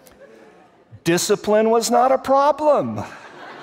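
A man speaks loudly and with animation into a microphone in an echoing hall.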